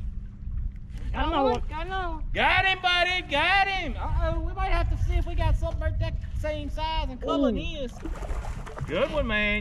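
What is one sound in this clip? A man talks excitedly close to the microphone.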